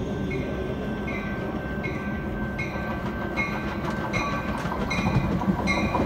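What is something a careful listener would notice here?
A train rumbles closer along the tracks, growing louder.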